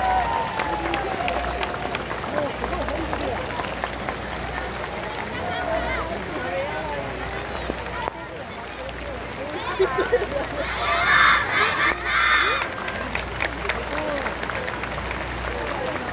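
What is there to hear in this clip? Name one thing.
A large crowd murmurs and chatters nearby outdoors.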